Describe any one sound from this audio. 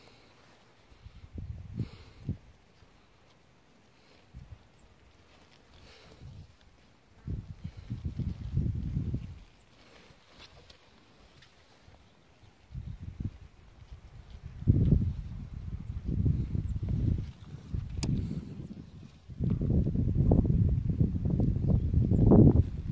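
Wind gusts and buffets the microphone outdoors.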